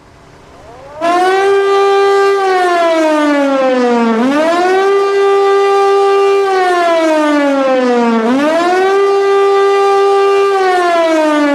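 A loud siren starts up again and wails, rising and falling repeatedly.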